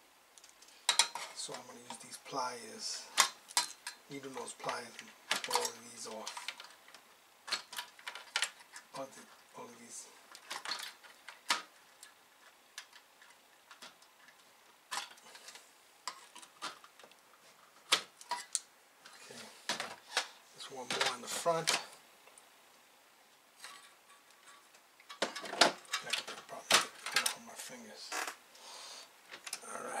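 Small metal tools click and tap against hard parts.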